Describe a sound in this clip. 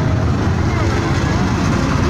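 Dirt-track modified race cars roar around the track.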